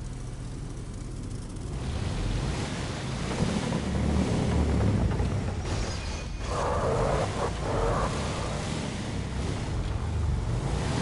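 Tyres roll over a rough dirt surface.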